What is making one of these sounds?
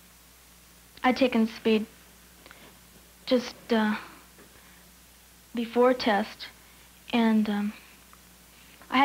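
A young woman speaks quietly in short phrases, close by.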